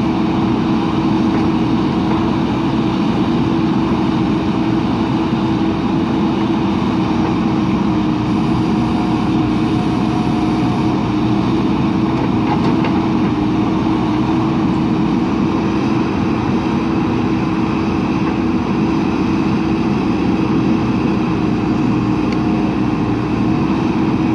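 A backhoe bucket scrapes and dumps loose soil.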